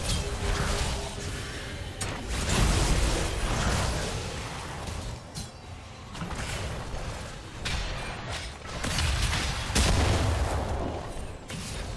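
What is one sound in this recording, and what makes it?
Magic spells crackle and whoosh in a busy fight.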